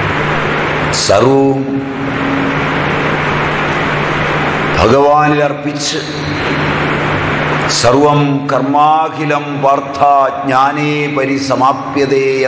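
A man speaks calmly and cheerfully close by.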